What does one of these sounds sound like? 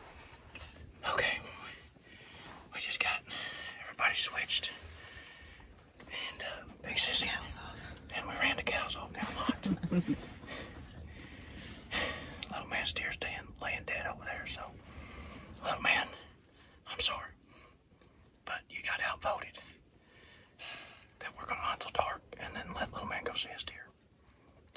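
A man whispers close by.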